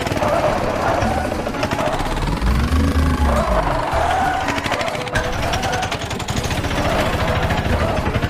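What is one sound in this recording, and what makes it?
Tyres screech during a sharp turn.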